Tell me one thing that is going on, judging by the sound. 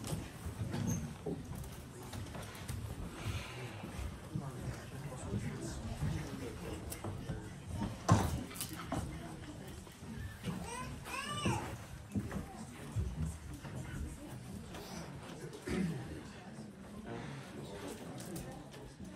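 Men and women murmur and chat quietly in a small room.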